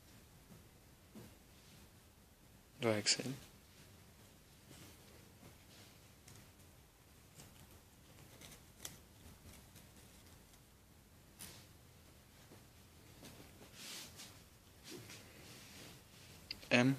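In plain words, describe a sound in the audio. Cloth rustles softly as hands handle and fold clothing close by.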